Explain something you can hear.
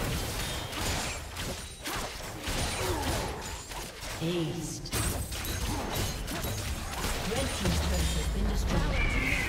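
Magic spells burst and whoosh in a fast video game battle.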